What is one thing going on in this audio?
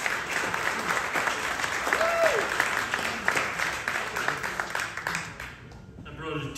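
Acoustic guitars strum a lively rhythm through loudspeakers.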